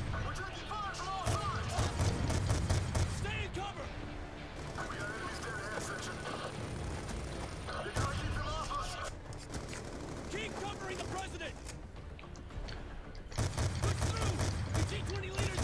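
Gunshots crack in rapid bursts, close by.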